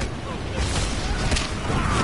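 An axe chops into a skeleton with heavy thuds.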